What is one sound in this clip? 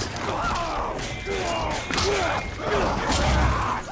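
A large beast snarls and growls.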